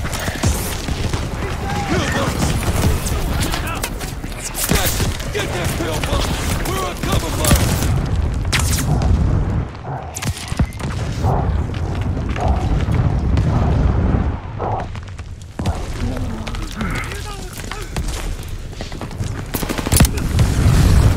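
Explosions boom and crack.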